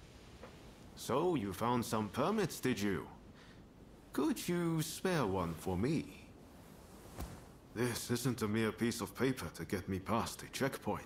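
A man speaks calmly in a deep voice, close by.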